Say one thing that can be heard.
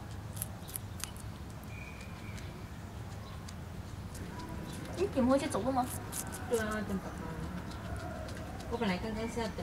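A guinea pig munches crunchily on a piece of vegetable.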